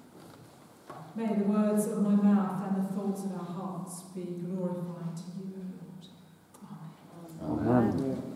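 A woman sings steadily through a microphone in a large echoing room.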